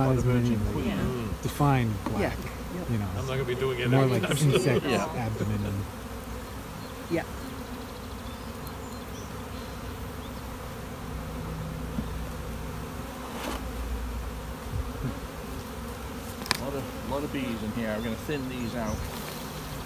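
Bees buzz in a low, steady hum.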